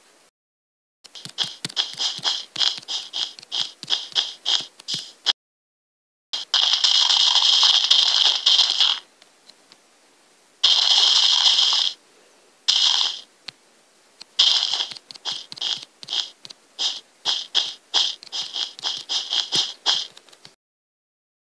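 Stone blocks knock softly as they are set down one after another.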